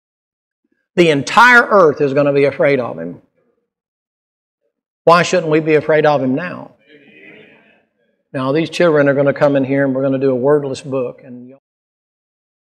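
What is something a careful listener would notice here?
A middle-aged man speaks with animation into a microphone, heard through a loudspeaker in an echoing hall.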